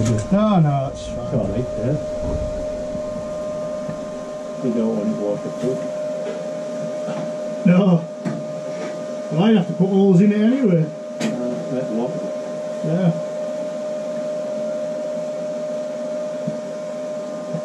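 A steel sheet scrapes and clanks as it is handled.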